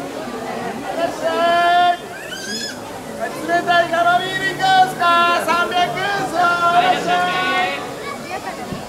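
A woman talks loudly and animatedly close by.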